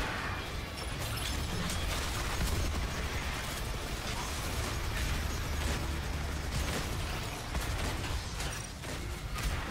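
Debris clatters.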